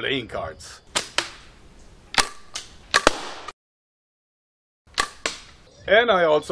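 Gunshots crack sharply outdoors.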